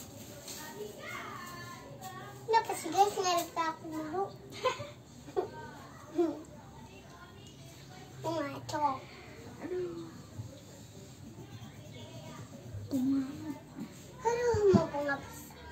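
A young child talks nearby in short bursts.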